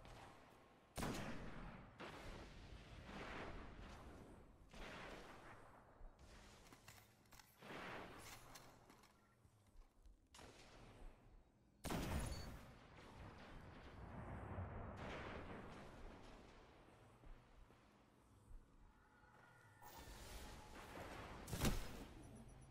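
A sniper rifle fires loud single shots that echo briefly.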